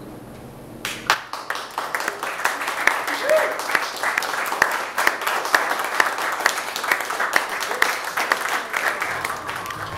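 A drum kit taps out a quick, busy rhythm.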